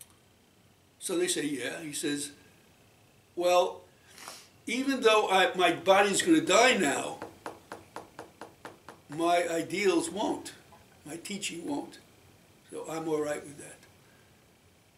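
An elderly man speaks calmly nearby, pausing between phrases.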